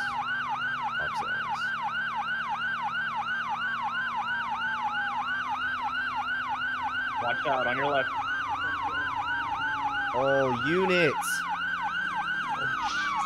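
A police siren yelps rapidly and steadily.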